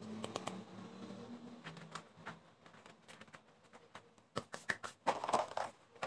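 Gloved hands squish and knead soft dough.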